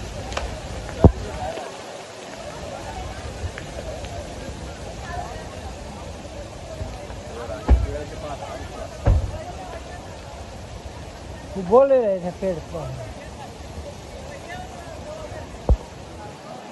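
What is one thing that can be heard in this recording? Falling boulders crash with heavy thuds.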